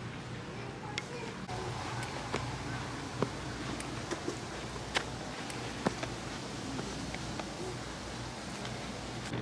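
Footsteps scuff and tap on stone steps.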